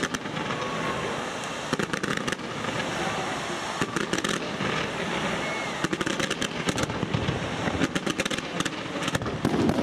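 Fireworks launch in rapid volleys with sharp pops.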